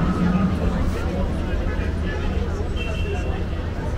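A tram rumbles past on its rails.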